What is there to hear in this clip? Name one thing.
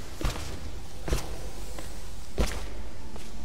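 Heavy knocks thud against wood.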